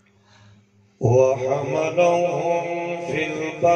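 A man chants loudly through a microphone and loudspeakers.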